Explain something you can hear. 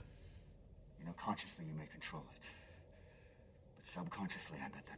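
A man speaks in a low, strained voice close by.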